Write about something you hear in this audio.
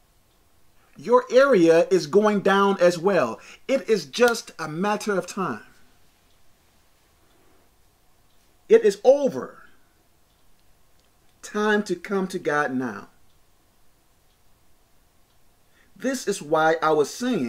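A man speaks with animation close to a microphone, pausing between phrases.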